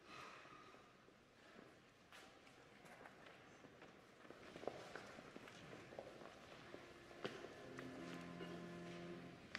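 Footsteps and shuffling echo through a large hall.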